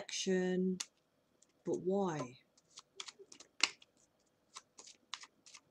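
Playing cards tap and slide on a table.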